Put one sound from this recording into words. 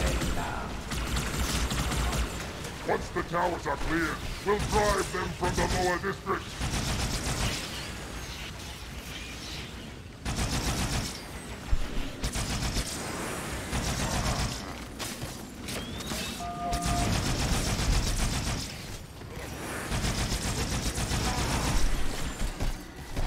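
Rapid crystal needle shots fire and hiss.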